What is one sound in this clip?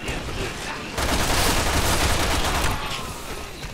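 A handgun fires shots.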